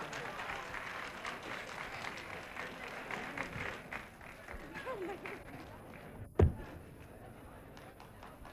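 A big band plays.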